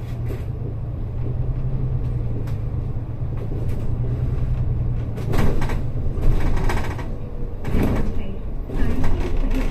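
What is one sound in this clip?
A bus drives along the road.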